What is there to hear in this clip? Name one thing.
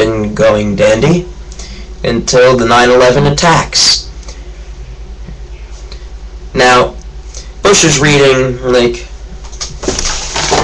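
A teenage boy talks casually, close to the microphone, in bursts with pauses.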